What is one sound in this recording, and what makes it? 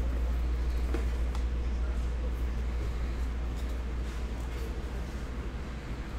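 A cardboard lid scrapes as hands open a box.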